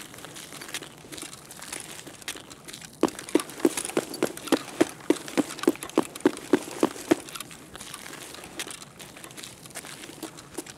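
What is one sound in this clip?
Footsteps thud steadily on a hard floor in an echoing tunnel.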